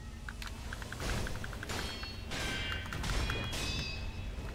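Swords clash and ring with metallic strikes.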